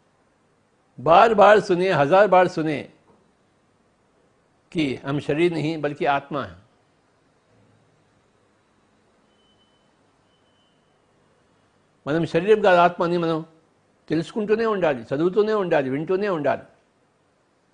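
An elderly man speaks calmly and slowly into a close microphone, in short phrases with long pauses.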